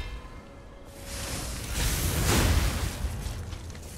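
A loud burst of crackling energy whooshes and rumbles.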